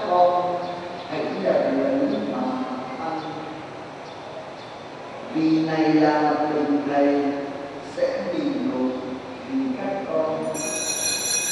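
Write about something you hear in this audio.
A man chants into a microphone, heard through loudspeakers in an echoing hall.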